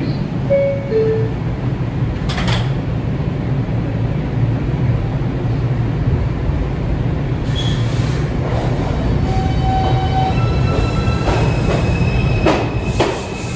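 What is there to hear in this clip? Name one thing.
A subway train rumbles loudly along its tracks.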